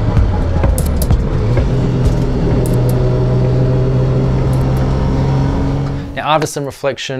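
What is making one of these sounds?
A race car engine roars at high revs from inside the cabin.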